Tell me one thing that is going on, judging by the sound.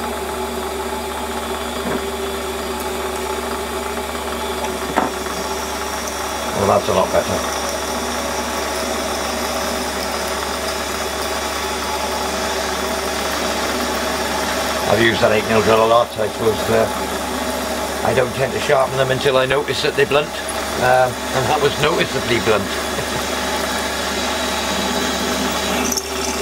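A lathe motor hums and whirs steadily.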